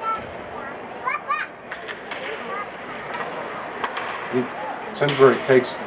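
Hockey sticks clatter against a puck and each other.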